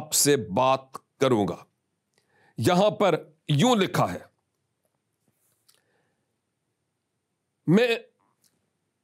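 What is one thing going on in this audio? A middle-aged man reads out calmly into a microphone, with pauses.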